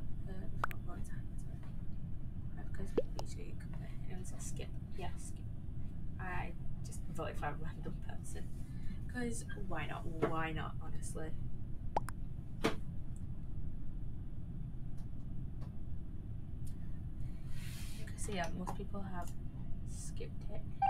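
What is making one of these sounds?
A young woman talks casually into a microphone, close by.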